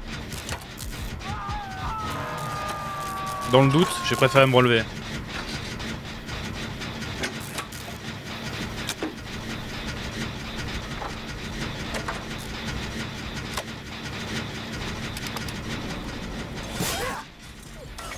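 A machine engine rattles and clanks steadily.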